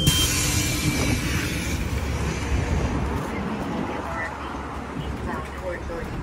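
A bus idles at a stop outdoors.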